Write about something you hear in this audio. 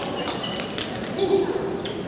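A table tennis ball bounces on a paddle.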